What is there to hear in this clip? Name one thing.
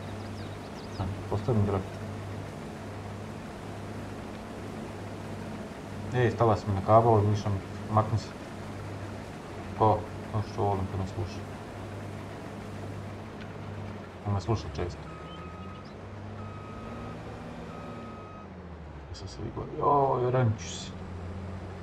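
A young man talks casually into a nearby microphone.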